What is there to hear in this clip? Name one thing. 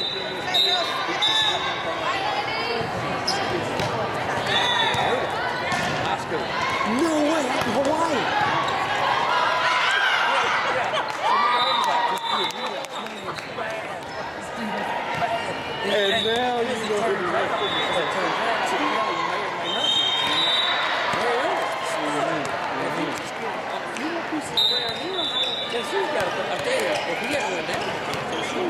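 Young women shout and cheer in a large echoing hall.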